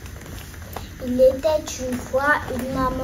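A young boy speaks calmly close by.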